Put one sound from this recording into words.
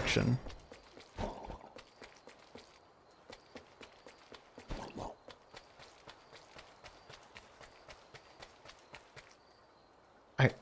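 Light footsteps tap steadily on stone and wood.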